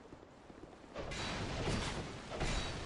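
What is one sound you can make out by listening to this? A sword swings and clashes loudly against armour.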